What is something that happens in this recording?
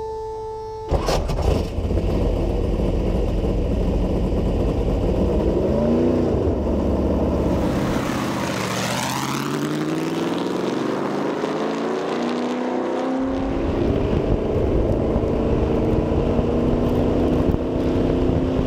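A race car engine starts with a loud bang and roars.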